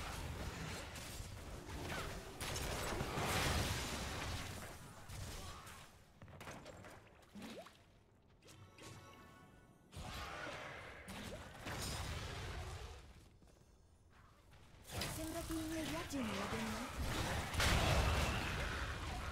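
Magic blasts and hits crackle and boom in a busy fight.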